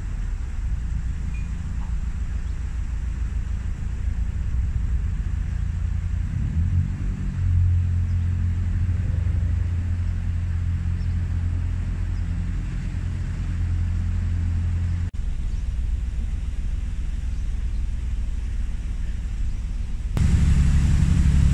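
A boat engine chugs steadily at a low pitch.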